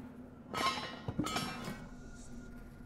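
A metal wire grate rattles as a hand shakes it.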